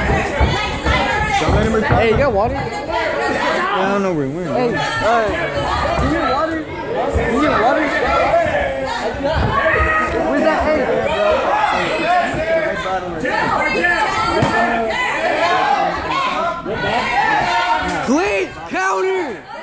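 Gloved punches and kicks thud against a body.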